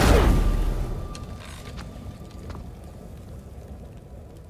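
Embers crackle and hiss as a fire burns down.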